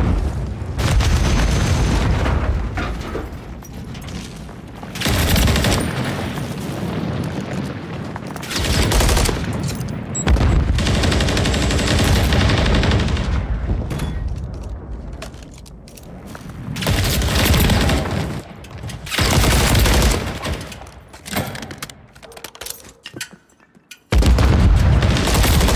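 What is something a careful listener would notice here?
Gunfire crackles in rapid bursts from a video game.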